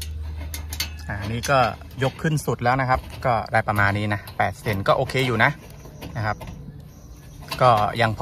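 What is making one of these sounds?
A hex key scrapes and clicks as a bolt is tightened.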